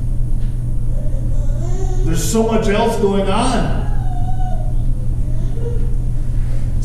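A man sings a slow phrase through a microphone in an echoing room.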